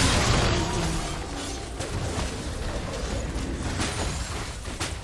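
Magic spells crackle and burst in quick bursts of battle sounds.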